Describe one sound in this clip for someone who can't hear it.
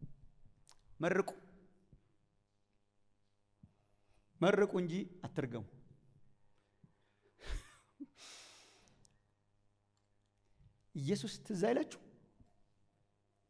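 A man preaches with passion through a microphone in a large echoing hall, in short bursts with pauses.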